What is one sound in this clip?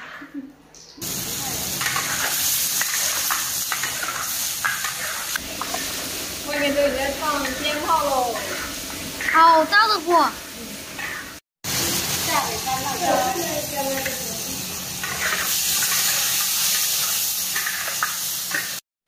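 Food sizzles and hisses in a hot wok.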